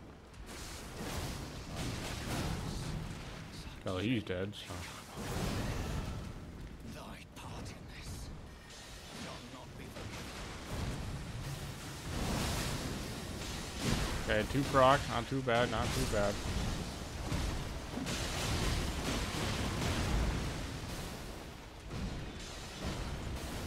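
Swords slash in quick bursts.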